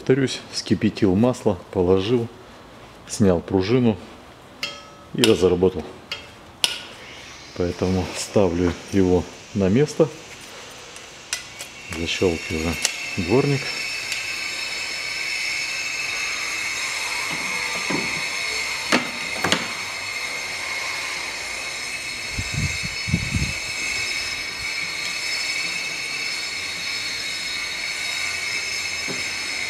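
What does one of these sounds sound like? A metal wiper arm clicks and knocks as it is fitted.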